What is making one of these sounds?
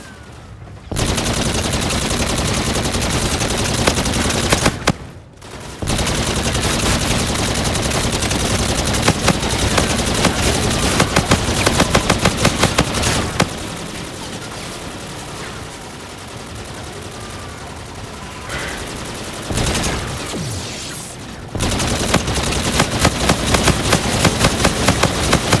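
An energy gun fires in rapid, crackling bursts.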